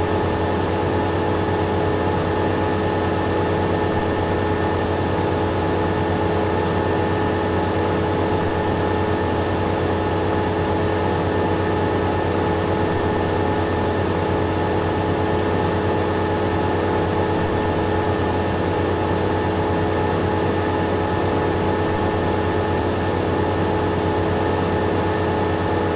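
A harvester engine drones steadily while cutting crops.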